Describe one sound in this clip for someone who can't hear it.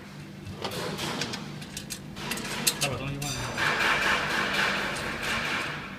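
Metal rods clink and scrape against a metal frame.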